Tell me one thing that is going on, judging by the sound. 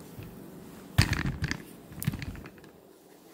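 Fabric rustles as it is handled.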